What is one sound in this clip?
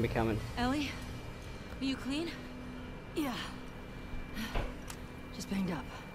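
A young woman asks a question with concern.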